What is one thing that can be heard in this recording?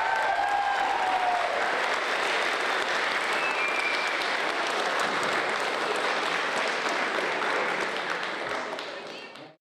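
A large crowd of children cheers and claps loudly in an echoing hall.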